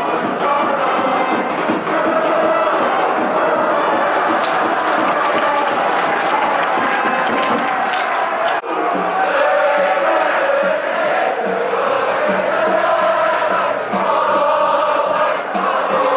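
A large crowd chants and sings together in an open stadium.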